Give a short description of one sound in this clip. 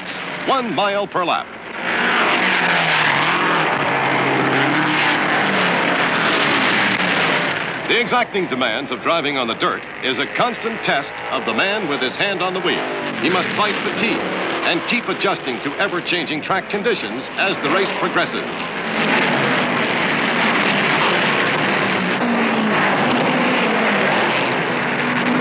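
Race car engines roar as the cars speed around a dirt track.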